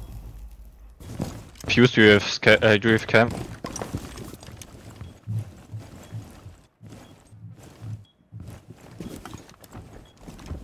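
Footsteps thud softly on a wooden floor.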